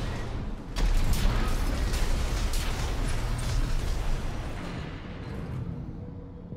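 Loud gunfire and explosions boom in a video game.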